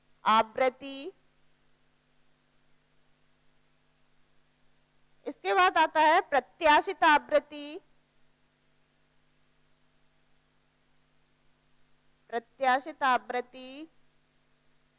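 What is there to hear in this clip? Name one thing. A woman speaks calmly through a close microphone in short bursts.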